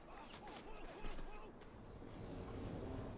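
A blade stabs into a body with a wet thud.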